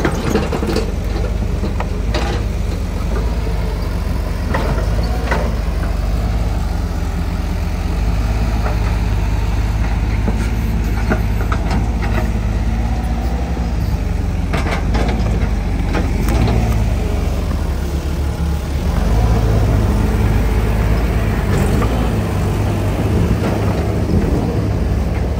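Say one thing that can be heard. Excavator buckets scrape and knock against soil and rubble.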